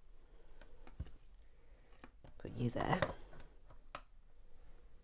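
A plastic UV lamp knocks and scrapes as hands set it down on a table.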